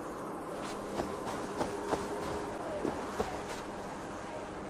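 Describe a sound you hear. Footsteps crunch through grass.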